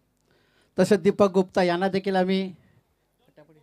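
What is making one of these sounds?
A man speaks loudly over a loudspeaker.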